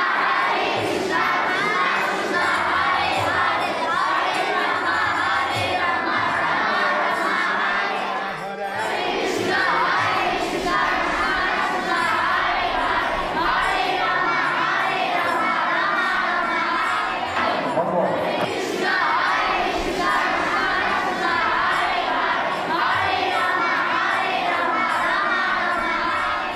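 A large group of children sings together loudly.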